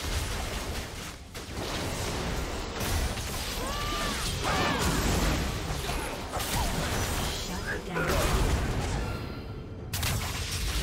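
Magic blasts whoosh and crackle in a video game battle.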